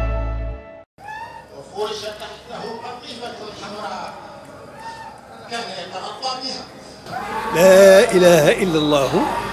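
A man chants in a melodic voice through a microphone.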